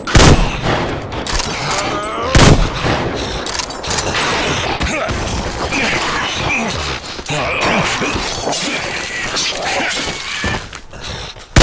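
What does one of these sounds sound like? Monsters snarl and growl up close.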